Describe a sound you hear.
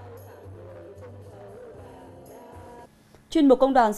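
Women sing together into microphones.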